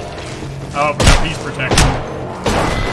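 Gunshots ring out close by.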